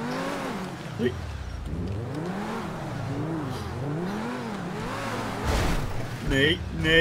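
A sports car engine revs up and down.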